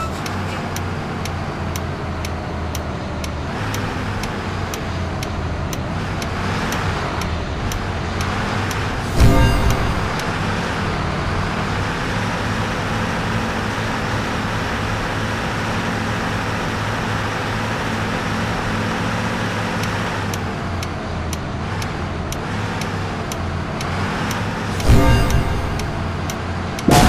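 A turn signal clicks rapidly.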